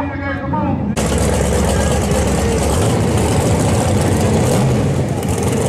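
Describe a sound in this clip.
A loud engine idles and rumbles nearby.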